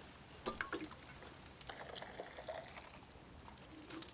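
Coffee pours from a metal pot into a tin cup.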